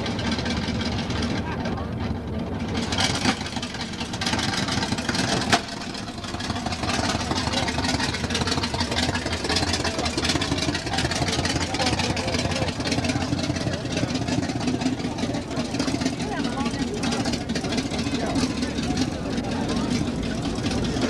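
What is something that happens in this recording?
A truck engine idles and rumbles slowly past.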